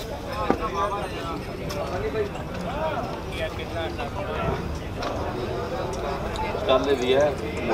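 Several men talk at once in a bustling outdoor crowd.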